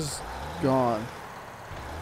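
A truck engine hums as the truck drives slowly.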